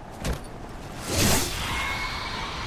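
Electricity crackles and snaps sharply.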